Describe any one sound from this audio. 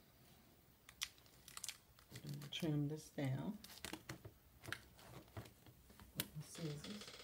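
A cardboard box knocks and taps.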